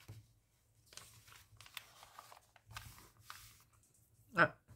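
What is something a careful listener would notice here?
Paper pages rustle as a page turns.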